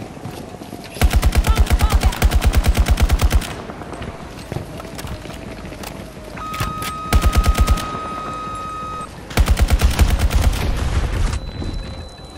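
A rifle fires rapid bursts of loud shots at close range.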